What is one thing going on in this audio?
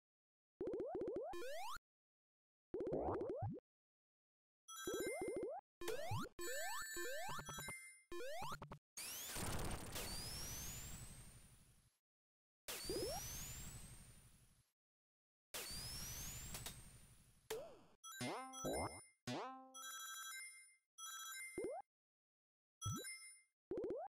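Bright chiming game sound effects ring out in quick bursts.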